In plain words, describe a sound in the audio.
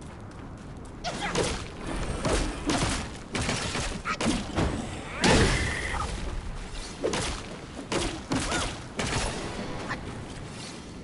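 Heavy blows and crashes ring out in a fight.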